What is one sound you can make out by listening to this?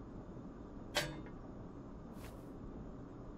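A gun clicks and rattles as it is handled.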